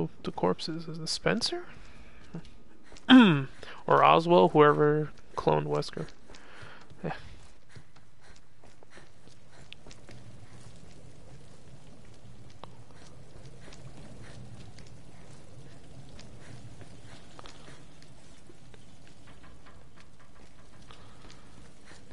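Footsteps tap on a hard floor.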